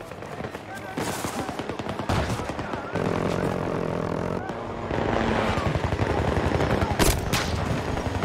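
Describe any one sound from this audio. Rifle shots crack sharply now and then.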